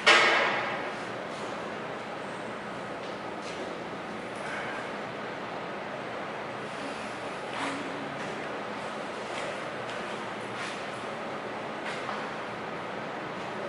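Men talk calmly nearby.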